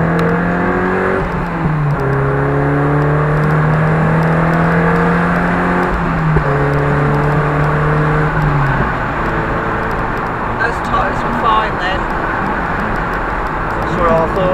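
Tyres roar on the road surface, heard from inside the car.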